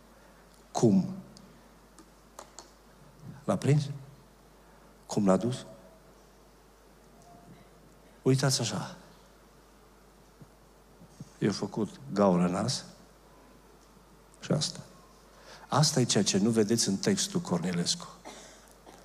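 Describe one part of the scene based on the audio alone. A middle-aged man speaks with emphasis into a microphone, in short bursts with pauses.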